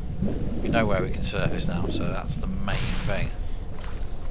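Water bubbles and gurgles underwater.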